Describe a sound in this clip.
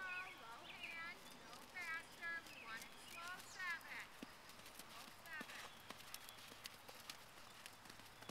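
A horse trots with soft, muffled hoofbeats on sand.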